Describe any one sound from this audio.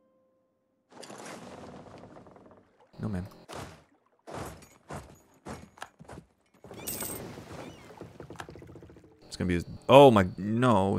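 A young man talks through a microphone, close by, with animation.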